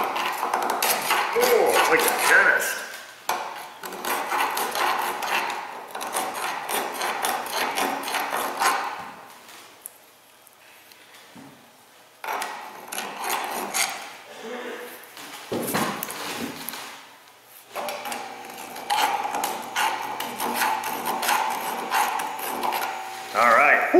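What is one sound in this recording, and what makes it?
A metal tool scrapes and grinds against metal in short bursts.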